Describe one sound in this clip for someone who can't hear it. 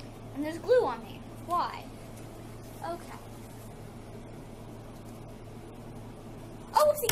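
A girl speaks with animation close by.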